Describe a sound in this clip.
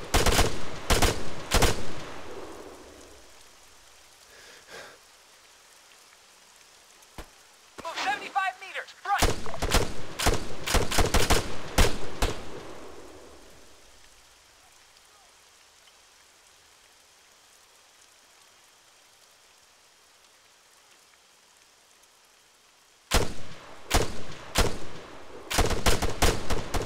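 A rifle fires rapid bursts of loud shots close by.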